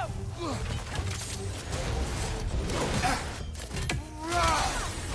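Blades slash and clash in a fight.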